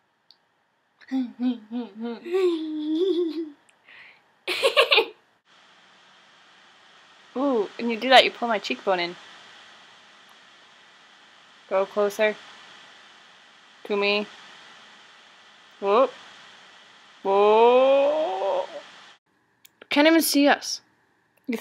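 Young women talk and giggle close by, with gaps of silence.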